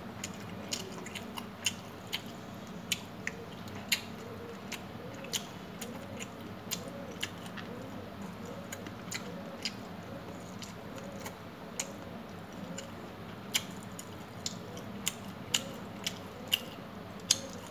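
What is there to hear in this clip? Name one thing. Fingers squish and mix rice on a metal plate.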